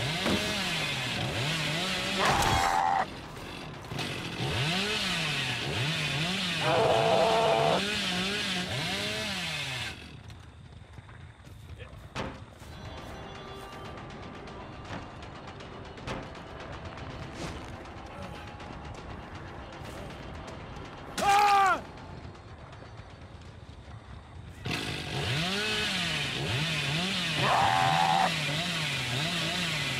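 A chainsaw engine revs up and down in a loud, wavering roar.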